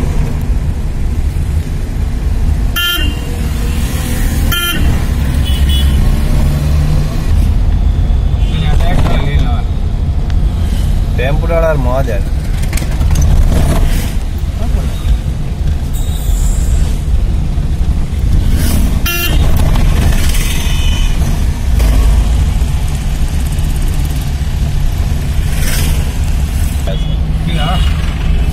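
A vehicle engine rumbles steadily from inside the cab.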